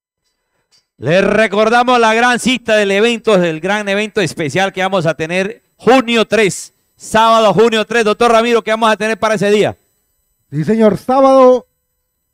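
A man calls out rapidly through a microphone.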